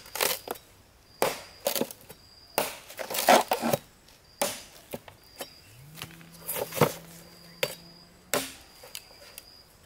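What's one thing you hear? Bamboo poles clatter against each other on the ground.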